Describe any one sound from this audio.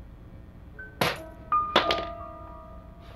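A metal key clinks sharply as it is picked up.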